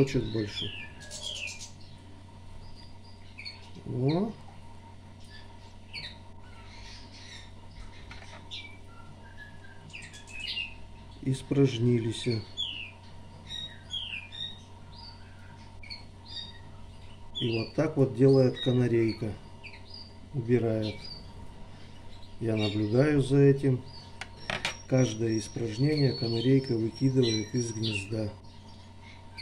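Baby birds cheep softly in short, high peeps.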